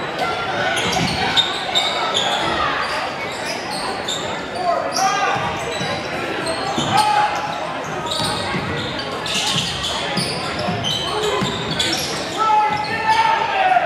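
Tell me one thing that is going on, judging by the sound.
A crowd murmurs and calls out in an echoing gym.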